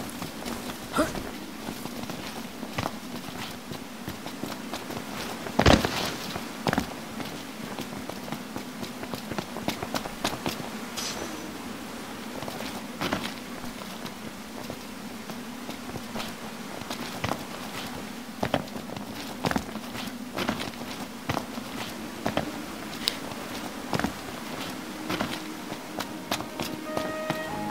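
Footsteps scuff and tap over rock and grass.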